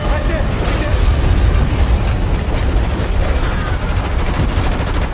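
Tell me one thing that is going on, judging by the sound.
Freight cars clatter and rattle on the tracks.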